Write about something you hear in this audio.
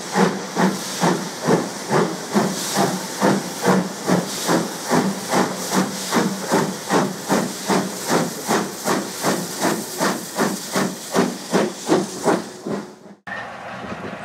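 A steam locomotive chuffs in rapid, rhythmic blasts as it pulls away.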